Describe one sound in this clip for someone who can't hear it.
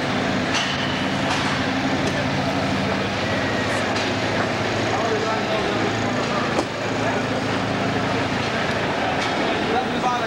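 A truck engine idles with a low steady rumble in a large echoing hall.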